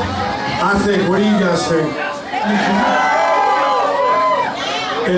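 A rock band plays loudly on stage.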